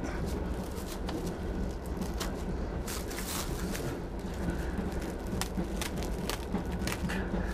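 A middle-aged man mutters to himself close by.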